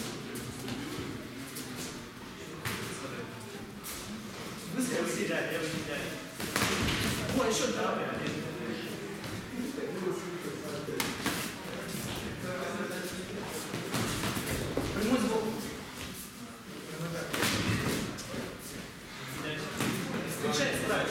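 Men call out and chatter nearby in a hall.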